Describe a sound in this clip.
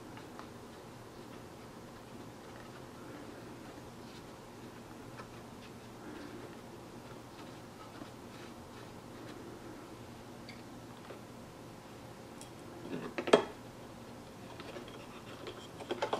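Small plastic and metal parts click and knock as a speaker is handled.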